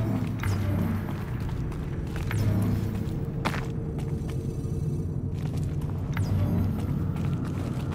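Footsteps tread steadily over hard ground.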